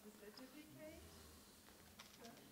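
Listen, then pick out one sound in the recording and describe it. A woman speaks quietly, heard from a distance in a large hall.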